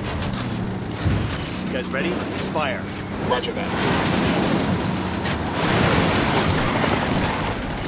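Tyres skid on gravel.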